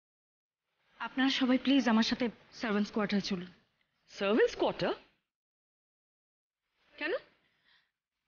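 A middle-aged woman speaks firmly and angrily.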